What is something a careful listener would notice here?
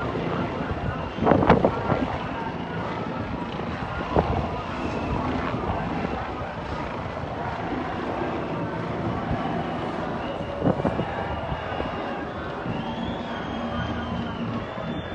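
A large crowd chatters and shouts in an open square below.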